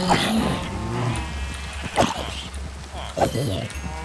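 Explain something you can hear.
A zombie groans.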